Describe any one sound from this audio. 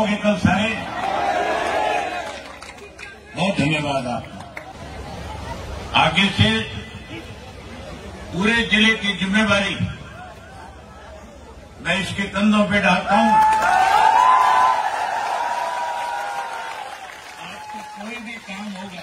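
A large crowd cheers and chants in response.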